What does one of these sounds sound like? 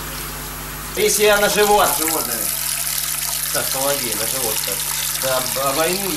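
Liquid pours and splashes steadily into a bowl.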